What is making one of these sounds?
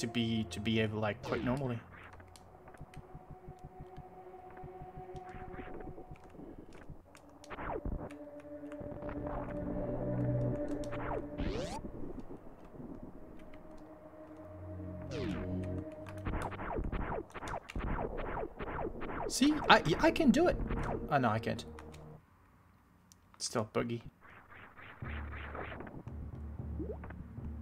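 Retro video game music plays with electronic effects.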